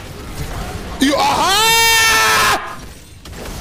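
A young man shouts excitedly, close to a microphone.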